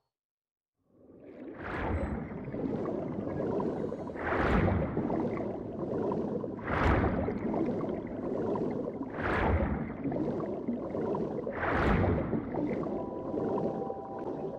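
Water surges and swooshes in slow, rhythmic strokes as a swimmer glides along.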